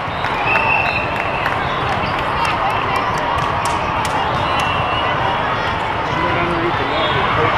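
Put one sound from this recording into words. A large crowd chatters, echoing through a big hall.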